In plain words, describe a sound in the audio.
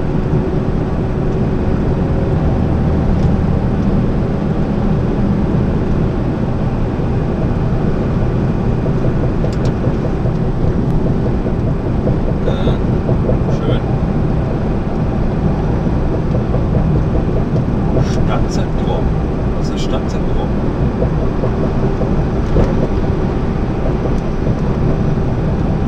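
A heavy diesel truck engine drones from inside the cab while cruising on a motorway.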